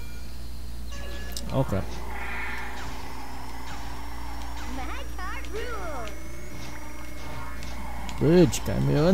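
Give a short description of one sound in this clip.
Kart engines hum and whine in a racing game.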